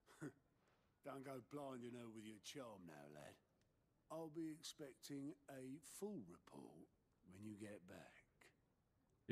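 A man with a rough voice speaks in a game.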